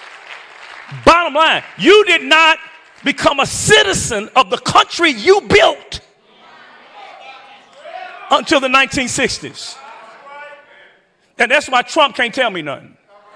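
A man preaches with animation into a microphone in a large echoing hall.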